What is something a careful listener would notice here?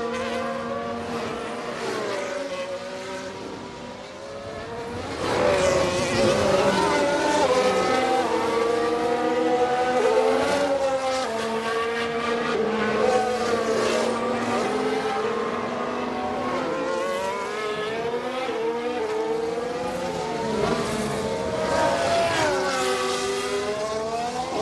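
A racing car engine whines at high revs, rising and falling in pitch as it shifts gears.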